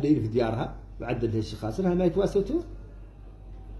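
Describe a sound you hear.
A middle-aged man speaks calmly and close to a phone microphone.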